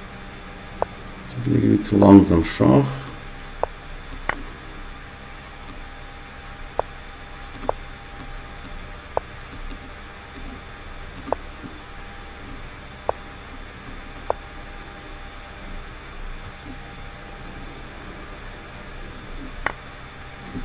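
A computer chess game plays short clicking sounds as pieces move.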